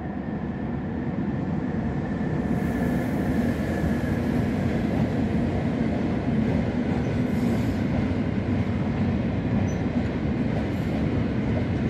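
A freight train approaches and rumbles past on the tracks, growing louder.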